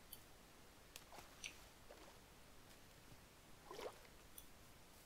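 Water splashes as a swimmer moves through it.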